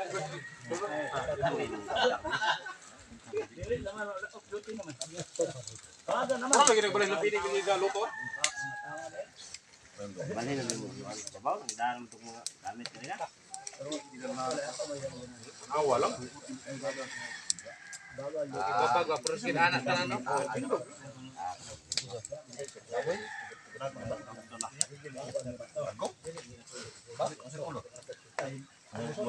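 A wood fire crackles under cooking pots.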